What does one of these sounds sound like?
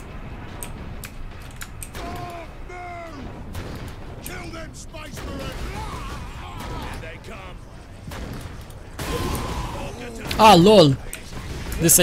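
Gunshots fire in short, sharp bursts.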